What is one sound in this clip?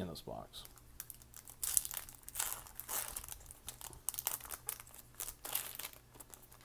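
A foil wrapper crinkles and tears as it is pulled open by hand.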